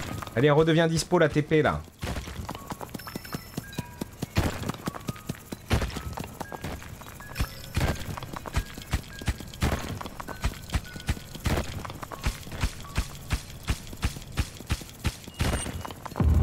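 Video game sound effects click and pop in quick bursts.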